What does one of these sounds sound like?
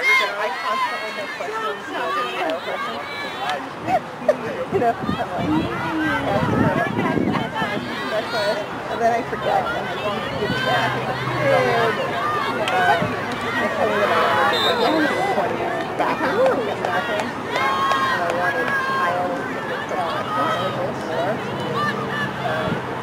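Young women shout and call out to each other across an open outdoor field.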